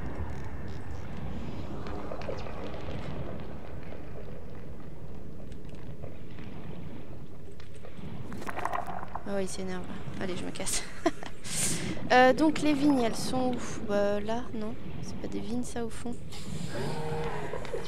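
Water rushes and bubbles steadily around a swimming diver.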